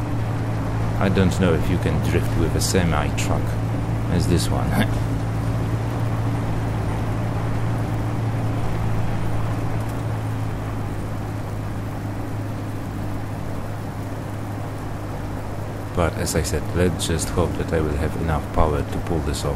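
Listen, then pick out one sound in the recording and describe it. A vehicle engine hums steadily and low.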